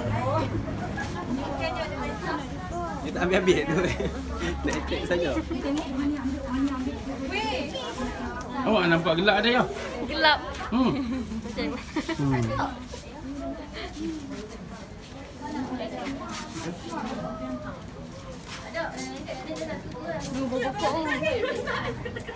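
Several women chat close by.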